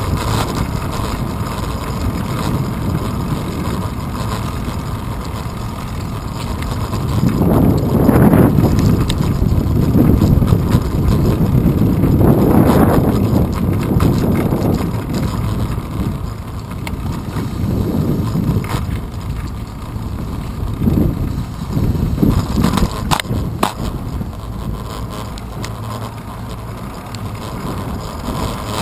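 Wind rushes past in low buffeting gusts, strongest midway.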